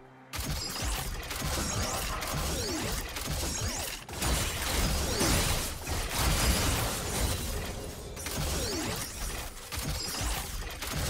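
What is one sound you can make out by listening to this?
Game combat sounds of spells and hits clash rapidly and continuously.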